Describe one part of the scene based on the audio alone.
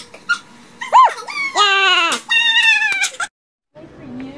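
A young woman squeals with delight.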